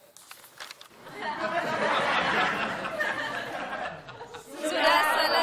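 A group of people laughs together.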